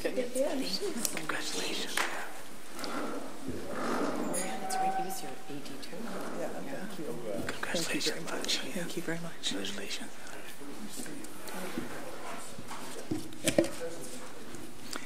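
Men talk quietly to each other nearby in a room.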